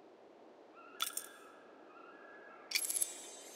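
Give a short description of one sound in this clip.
A game menu gives short bright chimes as options are selected.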